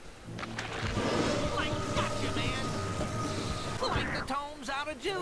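A magical energy burst crackles and whooshes loudly.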